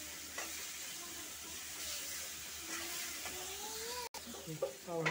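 A spoon scrapes and stirs food in a pan.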